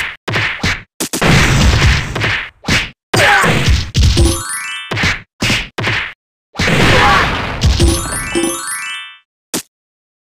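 Explosions burst with loud crashes.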